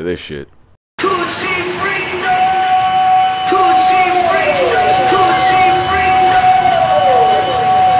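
A young man sings loudly close by.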